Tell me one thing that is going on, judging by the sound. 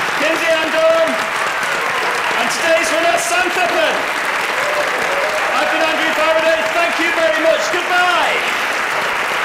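A man speaks with animation into a microphone in a large hall.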